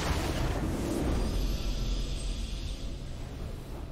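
A triumphant game fanfare swells.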